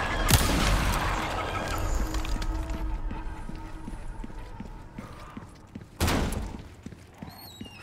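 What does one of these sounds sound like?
Footsteps thud steadily on stone stairs.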